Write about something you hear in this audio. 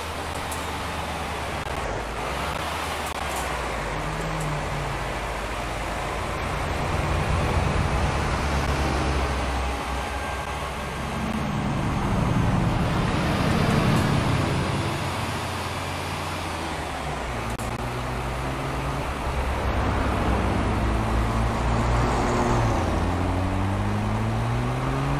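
A bus engine drones steadily and rises and falls in pitch as it drives.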